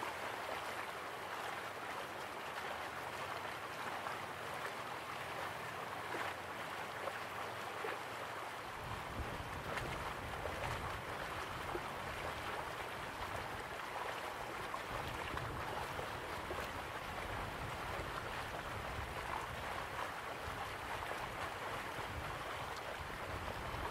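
Water splashes steadily down a small waterfall into a pool.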